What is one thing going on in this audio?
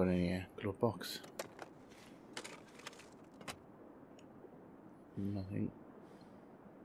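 A glove box clicks open and is rummaged through.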